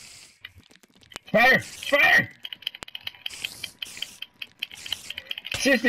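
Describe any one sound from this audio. A spider hisses and chitters nearby.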